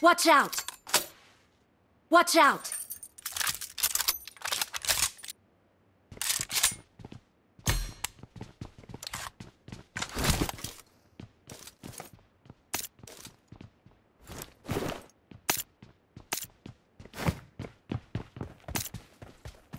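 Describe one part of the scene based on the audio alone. Footsteps thud on wooden floors and stairs.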